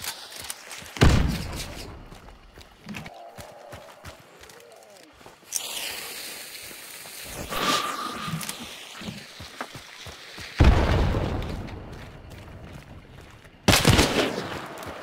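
A rifle fires loud, booming shots that echo outdoors.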